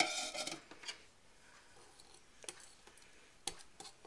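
Fingers rub and scrape against a ceramic bowl.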